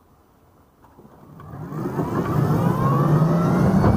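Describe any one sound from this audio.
An electric scooter's motor whines and rises in pitch as the scooter speeds up.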